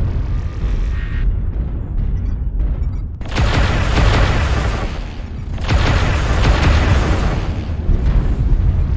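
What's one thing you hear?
A heavy machine rumbles low and steadily.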